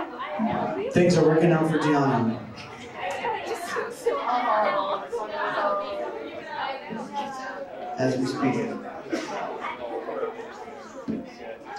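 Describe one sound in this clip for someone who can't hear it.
A man speaks through a microphone over loudspeakers in a hall.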